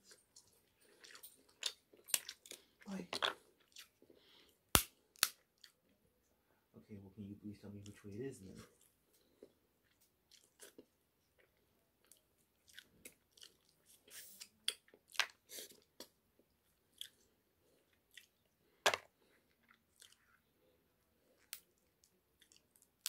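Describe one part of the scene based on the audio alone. Food crackles as a man breaks it with his fingers.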